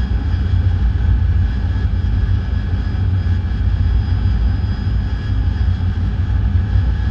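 A jet engine roars steadily with a deep rumble.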